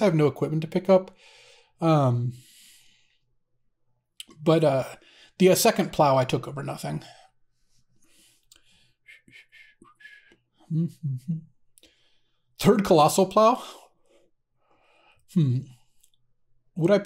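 A man talks casually into a close microphone, in short bursts with pauses.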